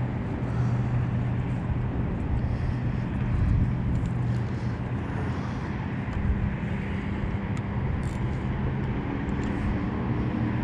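A boat engine hums steadily at idle.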